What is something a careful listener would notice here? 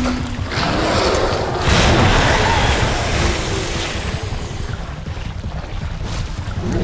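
Footsteps splash and wade through shallow water in an echoing tunnel.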